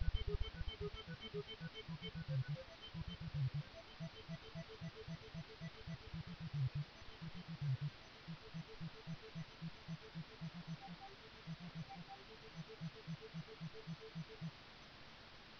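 Chiptune game music plays.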